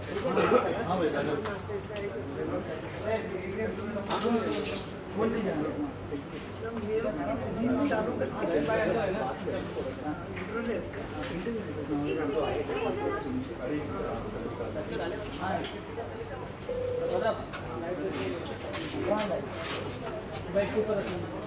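A crowd of men and women chatter close by.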